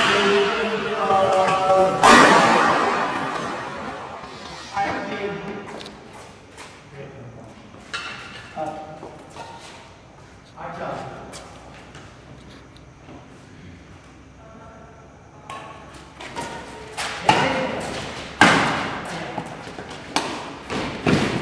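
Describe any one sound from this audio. Badminton rackets smack a shuttlecock back and forth in an echoing hall.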